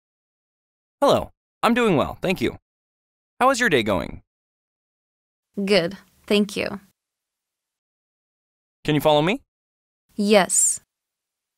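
A young woman speaks calmly and cheerfully.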